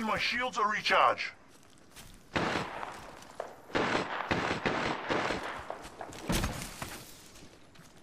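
A game character clambers up a slope with scraping, rustling steps.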